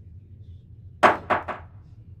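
A pool cue strikes a billiard ball.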